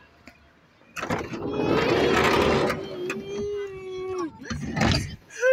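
A little girl cries and wails close by.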